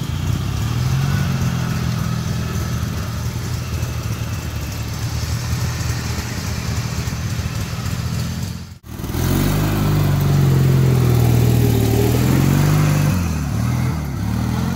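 A small engine rumbles and revs steadily.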